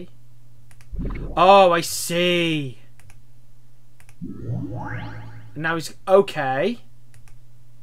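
Short swooping game sound effects play.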